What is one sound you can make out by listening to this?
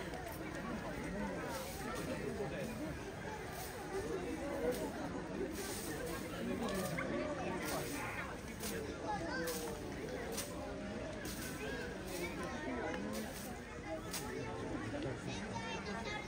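An elephant rustles leafy branches with its trunk.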